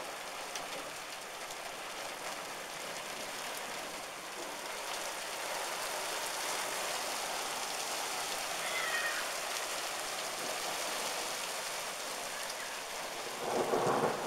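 Hail pelts down hard on the ground outdoors, with a steady hissing clatter.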